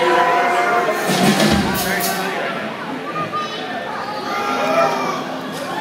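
A band plays loud live music on electric guitars and keyboards.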